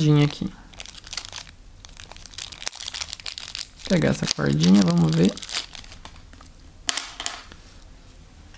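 Plastic wrapping crinkles and rustles between fingers.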